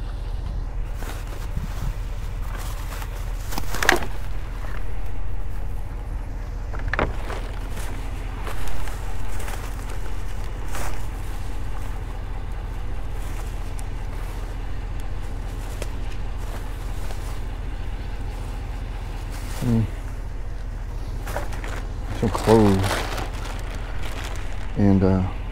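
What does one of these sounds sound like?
Thin plastic bags rustle and crinkle as hands rummage through them.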